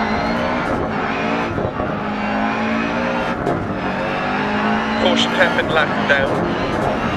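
A rally car engine revs hard, rising and dropping as the gears change.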